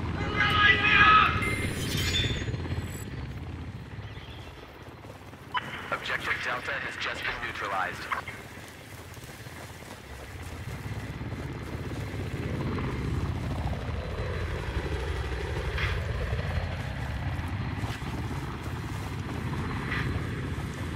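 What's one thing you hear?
A low rumble drones on steadily.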